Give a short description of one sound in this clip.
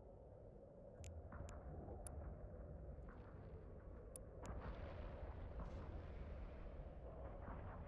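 Weapons fire with a low, steady rumble.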